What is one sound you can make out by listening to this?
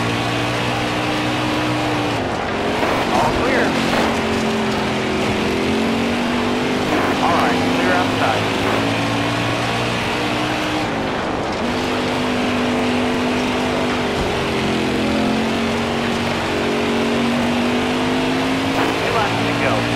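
A race car engine roars steadily, its pitch dropping and rising as it shifts and slides through turns.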